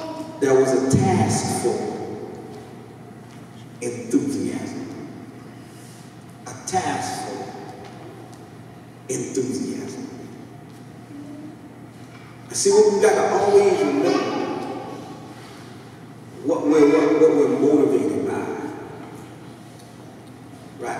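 A man preaches with animation through a microphone and loudspeakers in an echoing hall.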